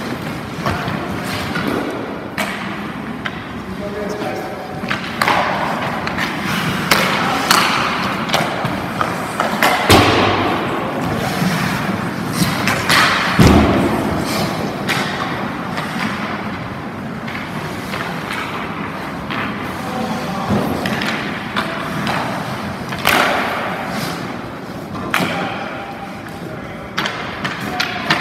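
Hockey skates scrape and carve across ice in an echoing rink.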